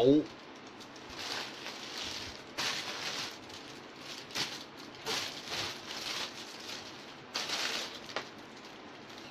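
Plastic rustles close by.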